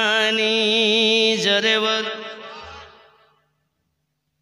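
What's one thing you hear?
A man chants loudly in a long, wavering held tone through a microphone, echoing as it fades.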